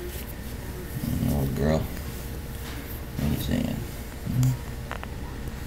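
A cat purrs very close by.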